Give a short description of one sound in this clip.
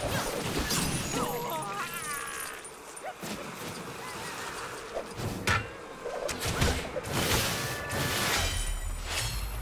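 Magical zaps and blasts crackle in quick bursts.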